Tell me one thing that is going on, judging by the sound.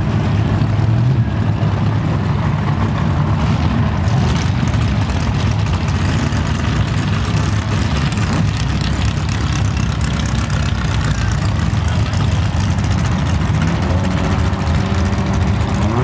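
Powerful racing engines rumble and rev loudly outdoors.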